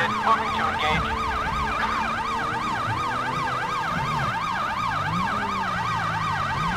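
A police siren wails rapidly up and down, close by.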